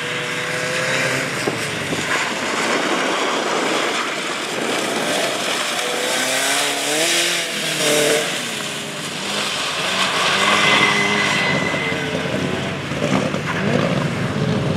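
A car engine revs hard and whines through its gears.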